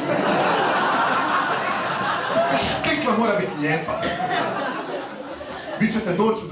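A young man talks animatedly into a microphone.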